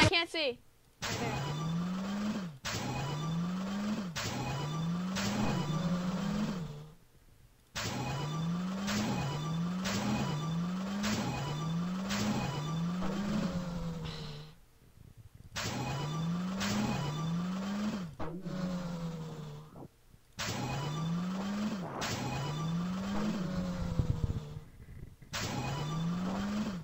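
Cartoon race cars rev their engines over and over.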